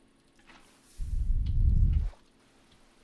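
Water gushes and splashes out of a bucket.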